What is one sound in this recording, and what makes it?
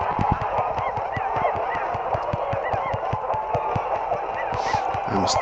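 Cartoon boxing gloves thump rapidly in quick punches.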